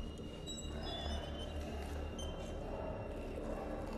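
A man breathes heavily close by.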